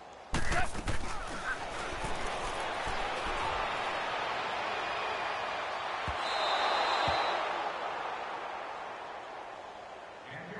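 A large stadium crowd roars and cheers loudly, then fades.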